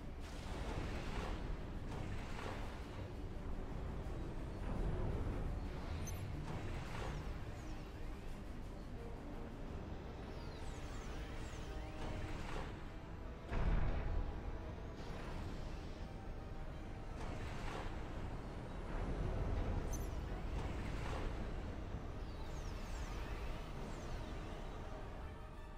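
Weapons fire and explosions boom repeatedly in a battle.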